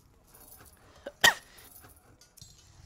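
A metal lock clicks sharply.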